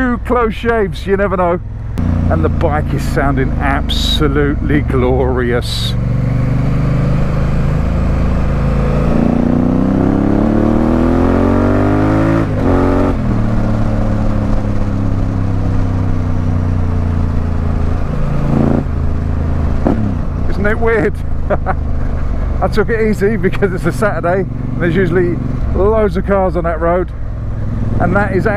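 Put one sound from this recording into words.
A motorcycle engine hums steadily and revs up and down while riding.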